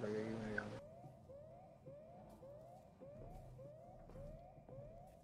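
An electronic tracker gives quick, repeated rising beeps.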